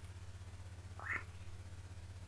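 A young man lets out a short exclamation close to a microphone.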